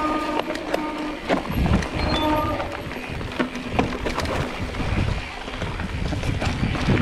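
Bicycle tyres crunch and rattle over a bumpy dirt trail.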